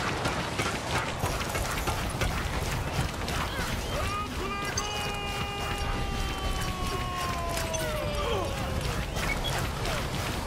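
Explosions boom in a video game.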